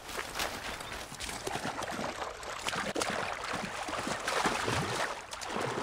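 Water splashes as someone wades and swims through it.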